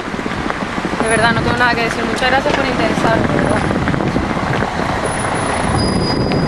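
Traffic rumbles on a street nearby.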